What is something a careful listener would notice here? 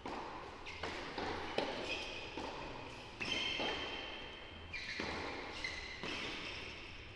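Tennis rackets strike a ball back and forth in an echoing hall.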